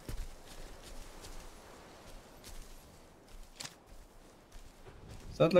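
Footsteps crunch slowly over dry ground.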